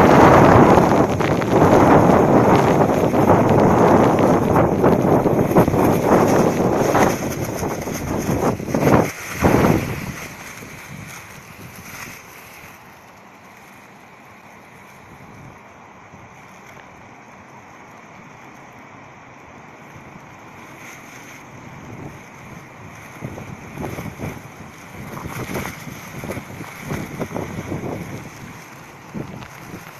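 Strong wind roars and gusts outdoors.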